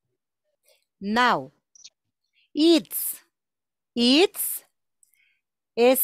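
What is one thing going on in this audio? A woman speaks slowly and clearly over an online call, drawing out single words.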